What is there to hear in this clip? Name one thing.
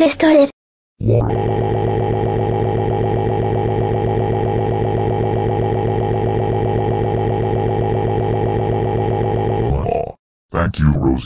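A man lets out a long, steady, buzzing scream.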